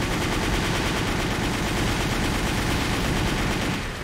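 Heavy guns fire in rapid bursts.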